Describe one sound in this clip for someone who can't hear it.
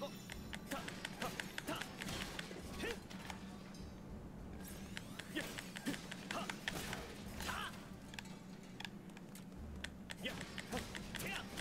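A sword swishes and clangs in combat.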